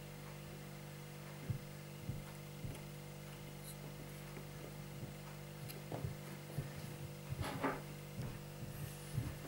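A small fan hums steadily.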